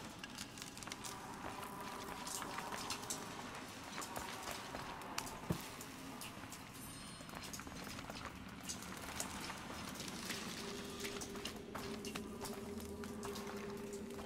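Footsteps crunch on debris.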